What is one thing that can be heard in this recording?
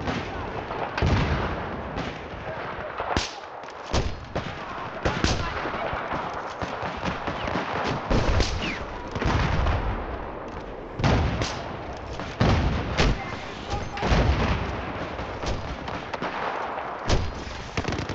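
A sniper rifle fires loud, sharp shots, again and again.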